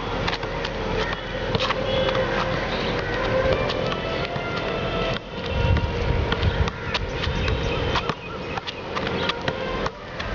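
A football thumps against a foot again and again.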